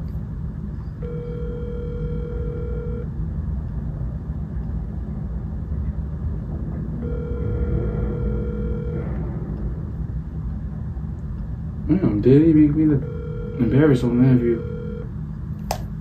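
A phone rings out with a repeating tone through its speaker.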